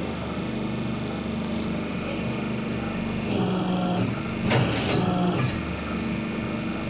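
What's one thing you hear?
A small machine motor hums steadily.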